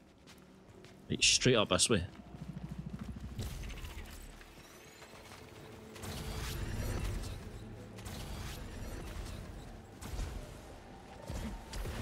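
Footsteps run quickly over dirt and stone.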